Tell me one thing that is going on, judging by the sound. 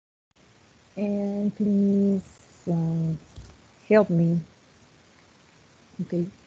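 A woman speaks slowly over an online call.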